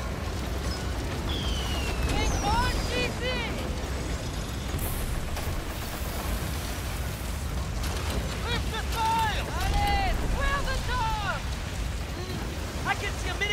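Waves wash against the hull of a wooden sailing ship moving through rough sea.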